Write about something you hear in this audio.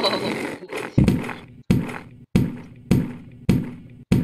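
Heavy thuds sound again and again as a rider lands hard.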